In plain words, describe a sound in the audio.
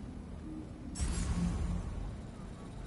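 Air rushes past in a sudden whoosh.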